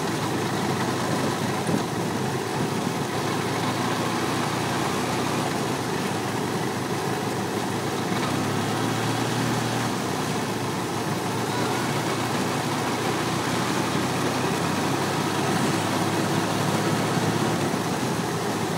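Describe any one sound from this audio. Wind rushes loudly past on a moving motorcycle.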